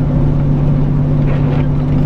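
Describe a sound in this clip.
A windscreen wiper swishes across the glass.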